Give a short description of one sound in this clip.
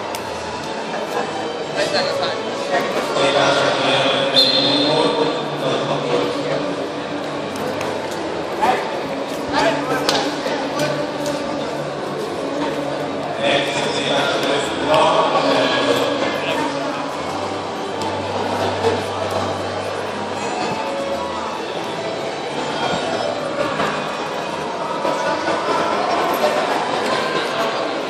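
A crowd murmurs and calls out throughout a large echoing hall.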